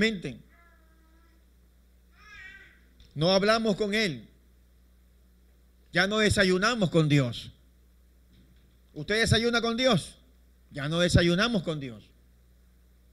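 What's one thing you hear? A man speaks through a microphone in short, animated phrases with pauses, in a slightly echoing room.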